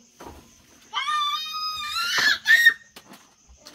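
A small child calls out nearby.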